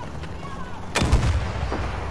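A rifle fires a single loud, booming shot.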